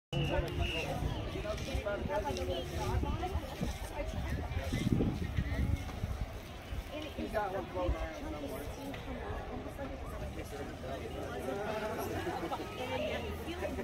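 A crowd of people chatter outdoors along a street.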